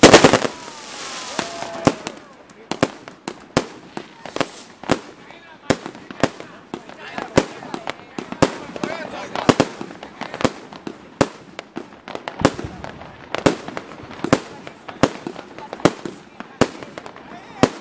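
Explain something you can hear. Fireworks burst with sharp, regular bangs, echoing outdoors.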